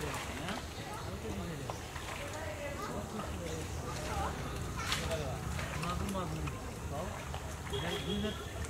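Feet and hands squelch and splash in wet mud.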